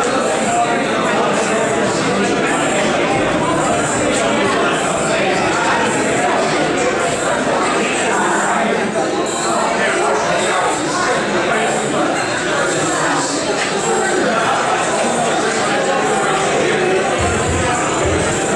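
A crowd of people chatters in an echoing room.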